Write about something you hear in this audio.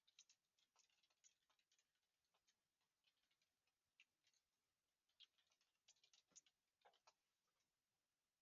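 Keys clatter quickly on a keyboard.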